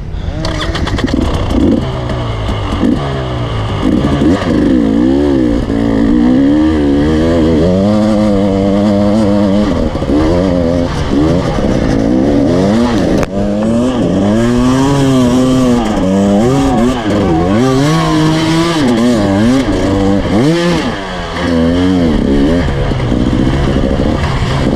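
A dirt bike engine revs hard, rising and falling in pitch.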